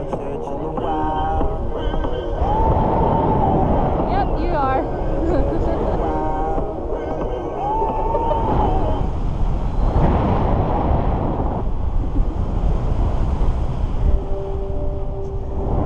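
Wind roars steadily against a nearby microphone.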